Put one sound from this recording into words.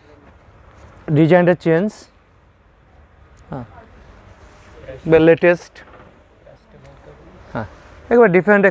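Silk fabric rustles as it is unfolded.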